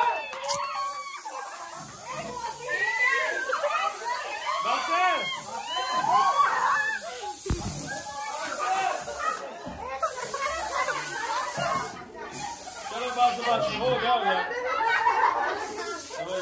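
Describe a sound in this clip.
Party spray cans hiss.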